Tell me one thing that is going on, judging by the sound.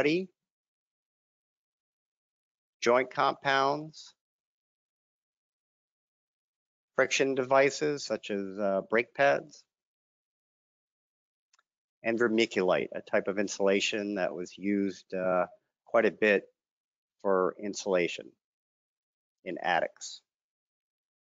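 A middle-aged man speaks calmly through a microphone, in short phrases with pauses.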